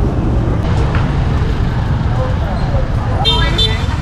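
A crowd murmurs at a busy outdoor street market.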